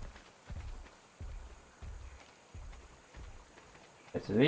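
Heavy footsteps thud at a steady pace.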